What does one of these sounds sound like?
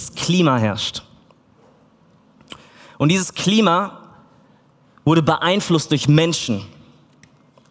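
A man speaks with animation through a microphone in a large room, in short bursts.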